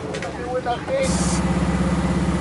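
A car engine idles with a steady rapid throb.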